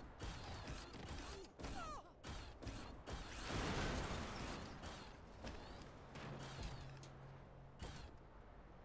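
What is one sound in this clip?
A large robot walker stomps along with heavy mechanical footsteps.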